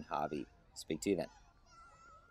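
A middle-aged man speaks into a microphone with animation.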